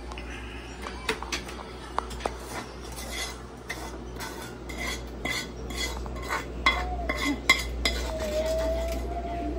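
Food is scooped and drops with light clatters into a foil tray.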